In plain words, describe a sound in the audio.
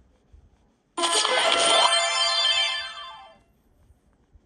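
A cheerful electronic jingle plays from a tablet speaker.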